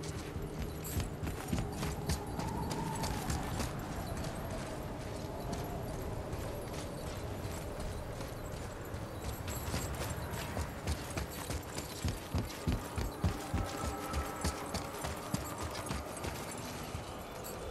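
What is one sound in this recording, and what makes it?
Heavy footsteps crunch on snow and ice.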